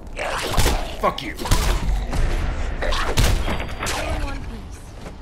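Heavy blows land in a loud, close fight.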